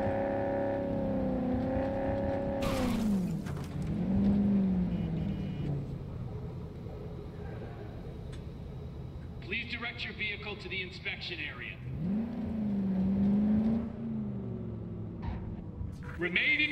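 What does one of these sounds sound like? A car engine revs, rising and falling in pitch.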